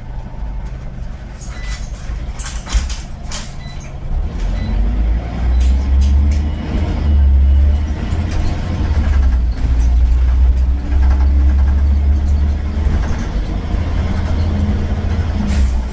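A bus interior rattles and creaks over the road.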